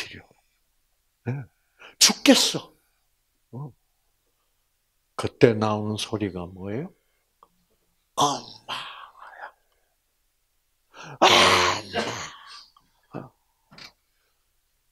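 An elderly man speaks with animation through a microphone, in bursts with pauses.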